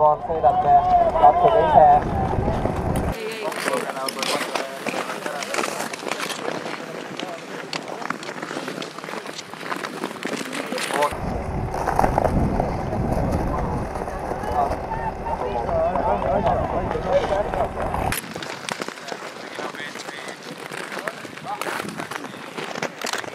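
Ice skate blades scrape and swish over ice.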